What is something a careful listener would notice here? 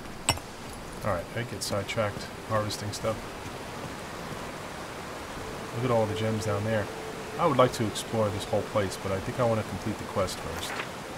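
A man talks calmly and close through a microphone.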